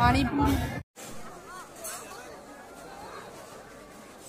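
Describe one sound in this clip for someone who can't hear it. A large crowd murmurs in the distance outdoors.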